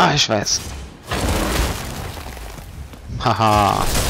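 Heavy debris crashes and rumbles loudly.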